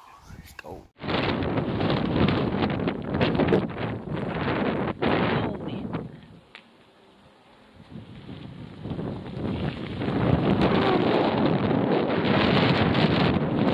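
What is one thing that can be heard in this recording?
Wind rushes loudly against the microphone outdoors.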